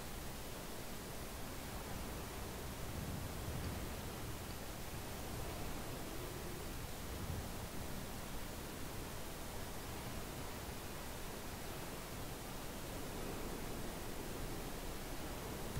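Water washes softly against a moving ship's hull.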